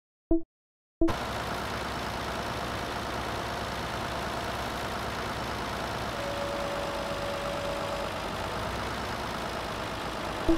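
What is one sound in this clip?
A tractor engine hums steadily as it drives along.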